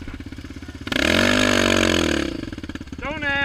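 A nearby quad engine revs up and drops back.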